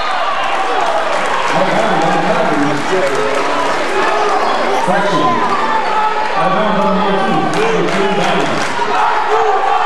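Young men shout to one another on the court.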